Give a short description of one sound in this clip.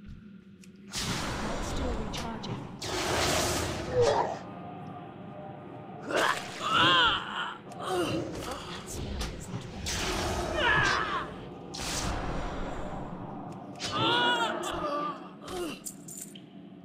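Magic spells whoosh and burst.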